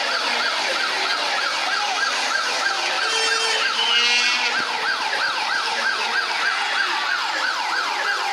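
A large crowd of men and women cheers and chants outdoors.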